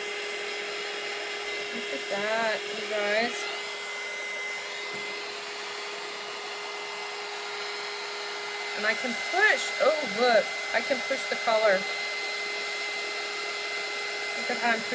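A heat tool whirs with a steady hum.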